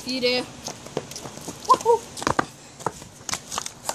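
Footsteps slap on pavement.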